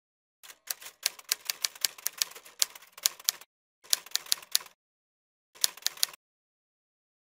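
Typewriter keys clack in quick bursts.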